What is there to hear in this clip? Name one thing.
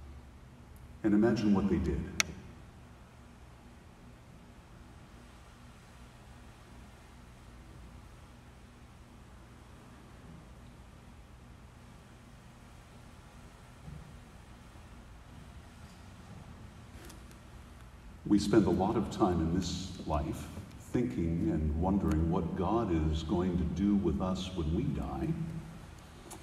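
An older man speaks slowly and calmly through a microphone in an echoing hall.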